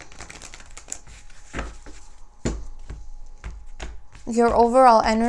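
Cards shuffle and tap against each other.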